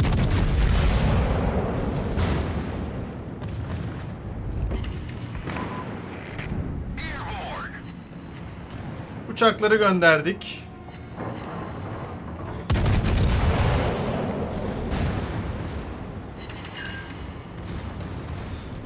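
Heavy naval guns boom with a deep rumble.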